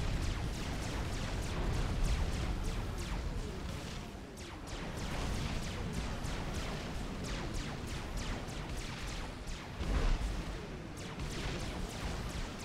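Game units fire rapid bursts of laser shots and explosions.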